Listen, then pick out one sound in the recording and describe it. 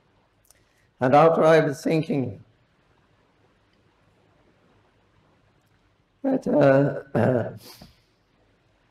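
An elderly man speaks calmly into a microphone in short phrases.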